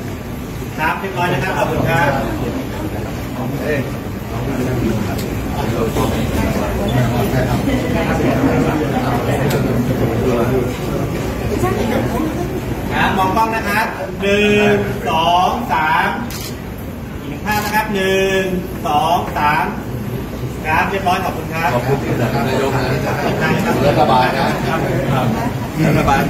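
Several men and women chat and laugh close by in a room.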